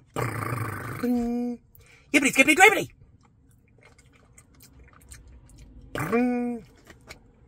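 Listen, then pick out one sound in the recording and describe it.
A young man hums with pleasure.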